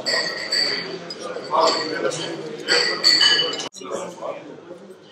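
A crowd of men chatters indoors.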